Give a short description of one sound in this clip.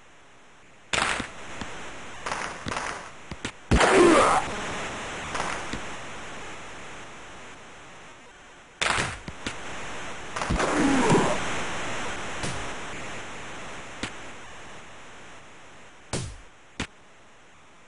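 Hockey sticks smack a puck with sharp clacks.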